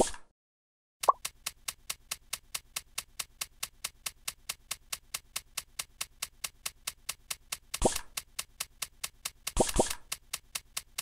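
Rapid, even electronic ticks patter as a game spider scurries forward.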